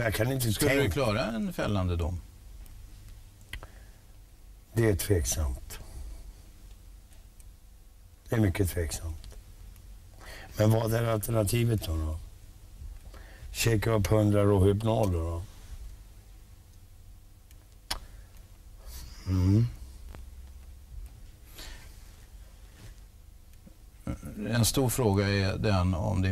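A middle-aged man speaks calmly into a close microphone, in short bursts with long pauses.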